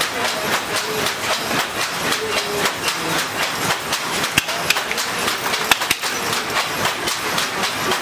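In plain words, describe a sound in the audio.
A wooden loom clacks rhythmically as it is worked by hand.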